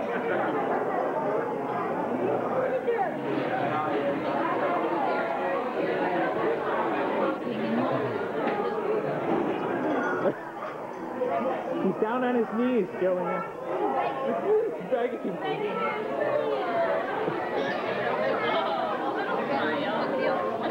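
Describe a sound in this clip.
A crowd chatters in the background of a busy room.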